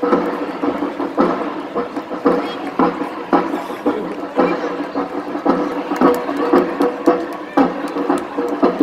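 Many footsteps march in time on pavement.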